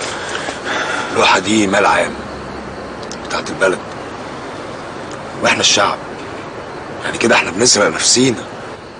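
A man speaks calmly and seriously nearby.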